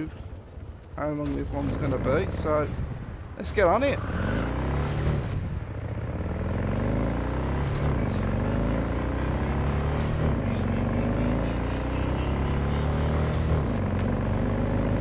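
A motorbike engine hums and revs steadily.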